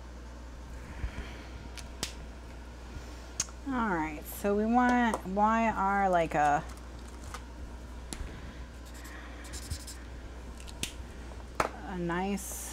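Plastic markers click and clatter as they are picked up and set down.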